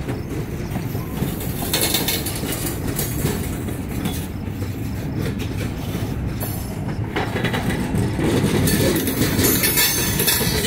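Steel wheels clatter and screech on the rails.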